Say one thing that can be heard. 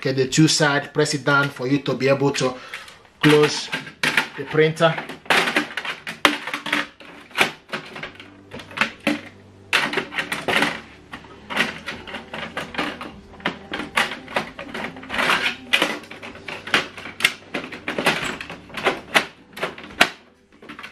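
A plastic printer tray clatters and clicks as it is handled.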